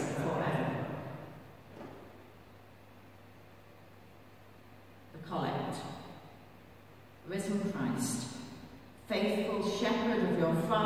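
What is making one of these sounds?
An elderly woman reads aloud calmly into a microphone in a large echoing hall.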